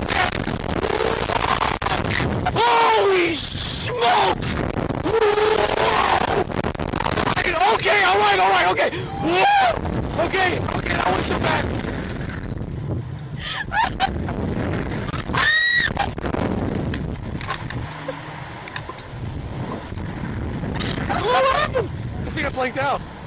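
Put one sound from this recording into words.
A young woman screams and laughs close by.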